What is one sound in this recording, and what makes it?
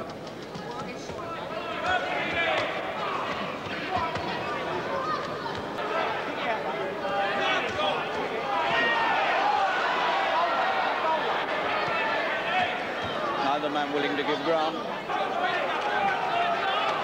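A crowd cheers and shouts loudly in a large hall.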